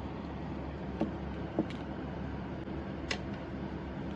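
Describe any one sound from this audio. Plastic caps click as tubes are opened and closed.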